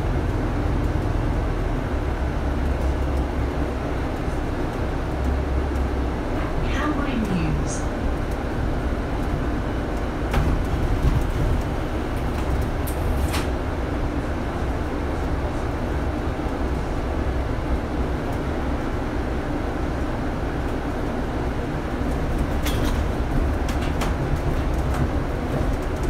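A double-decker bus engine rumbles, heard from inside on the upper deck, as the bus drives along a road.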